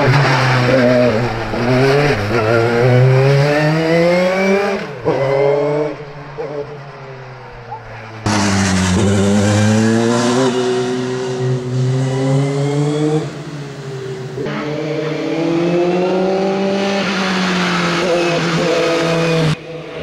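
A racing car engine revs hard close by, its pitch rising and dropping sharply through gear changes.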